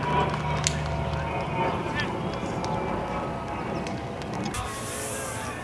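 Young men chatter and call out nearby outdoors.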